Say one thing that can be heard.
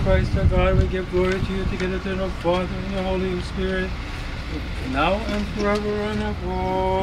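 A man chants a prayer in a steady, sung tone outdoors.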